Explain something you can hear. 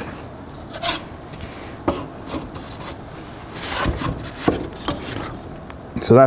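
Wooden parts knock and tap together as they are handled.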